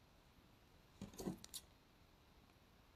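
Scissors snip a thread.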